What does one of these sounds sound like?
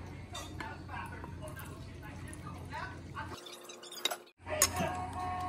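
Liquid pours onto rice in a bowl.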